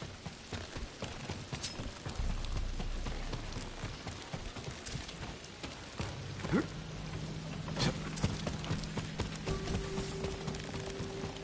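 Footsteps thud quickly on wooden boards.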